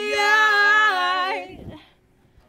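A young woman sings a long, high note with power, close to a microphone.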